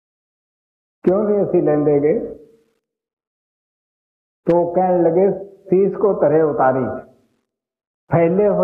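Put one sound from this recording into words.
An elderly man speaks calmly and slowly, close by, in short phrases with pauses between them.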